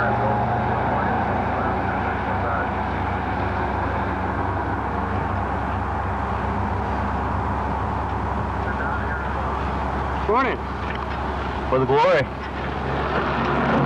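A tricycle's tyres roll over the road as it approaches.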